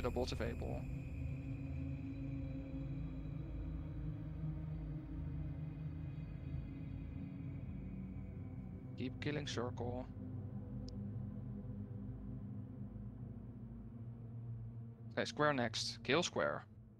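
Magic blasts and combat effects rumble and whoosh steadily.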